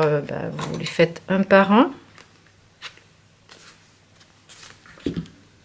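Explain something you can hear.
Stiff card sheets rustle and tap as they are handled.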